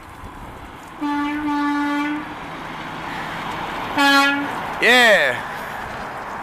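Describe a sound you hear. A truck's air horn blasts several times.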